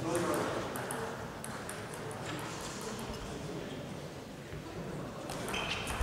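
A table tennis ball taps lightly on a table in an echoing hall.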